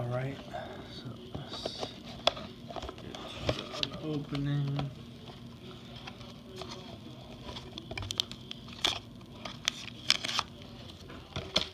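A cardboard box is opened with scraping and tapping.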